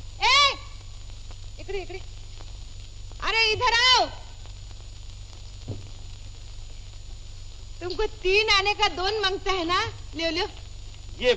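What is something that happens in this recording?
A young man sings cheerfully nearby.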